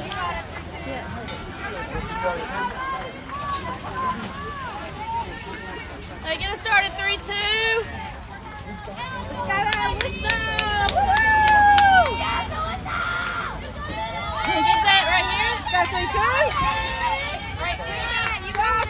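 Young women chant and cheer loudly outdoors.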